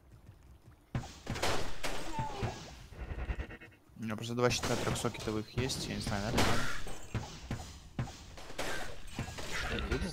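Blows strike monsters with sharp impacts.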